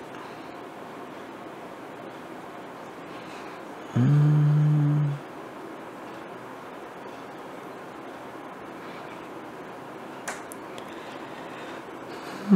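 A cotton swab rubs and scratches softly inside an ear, close up.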